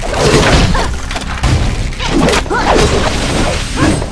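A fiery magic blast bursts with a whoosh.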